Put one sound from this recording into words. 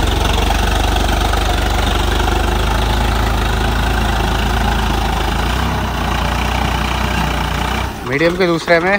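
A tractor engine chugs steadily up close.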